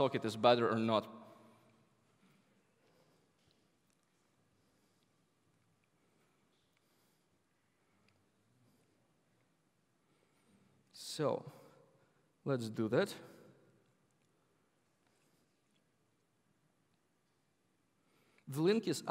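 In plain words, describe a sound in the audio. A young man speaks calmly into a microphone, with long pauses.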